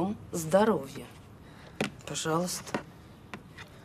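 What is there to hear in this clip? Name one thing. A middle-aged woman speaks.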